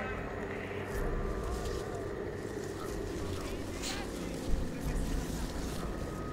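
Dry grass rustles as someone pushes through it.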